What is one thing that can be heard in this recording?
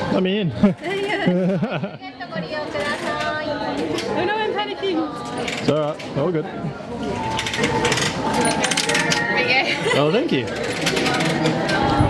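A crowd of people chatters in an echoing hall.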